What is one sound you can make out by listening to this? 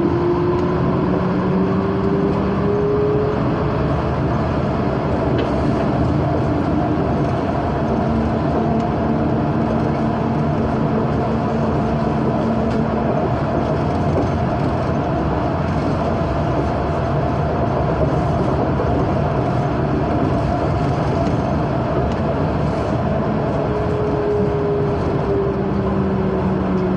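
A train's electric motor hums and whines, rising and falling in pitch.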